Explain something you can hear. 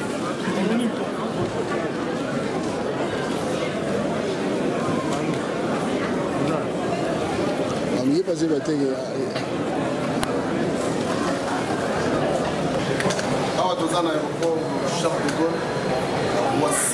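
A crowd of people chatters in a large echoing hall.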